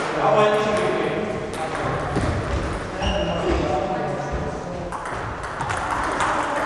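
Table tennis balls click on tables and bats in a large echoing hall.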